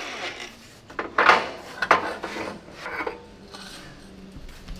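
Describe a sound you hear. Metal pipes clank.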